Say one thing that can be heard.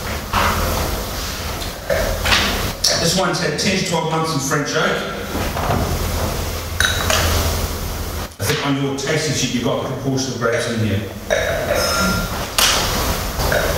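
A man speaks calmly into a microphone over a loudspeaker in an echoing room.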